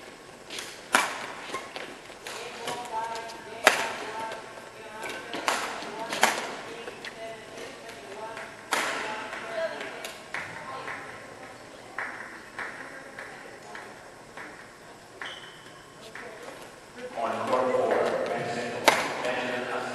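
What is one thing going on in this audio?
A badminton racket strikes a shuttlecock in a large echoing hall.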